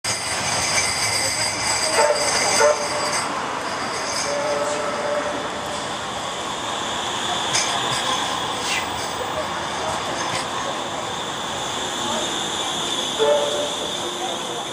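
A tram hums and rumbles past close by.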